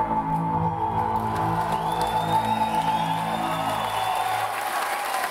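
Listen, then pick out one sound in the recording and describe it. A keyboard plays low, sustained notes and then stops.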